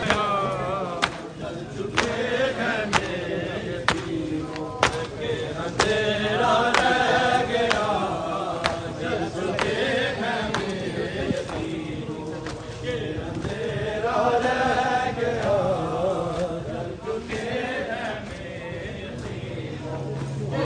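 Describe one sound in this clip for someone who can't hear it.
Men beat their chests in a slow, steady rhythm.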